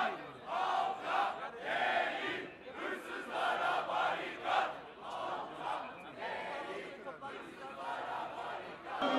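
A man speaks loudly and with animation close by.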